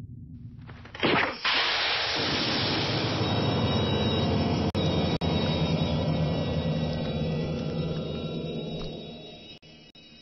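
Liquid gushes and splatters loudly.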